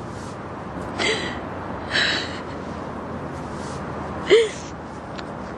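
A young girl sobs close by.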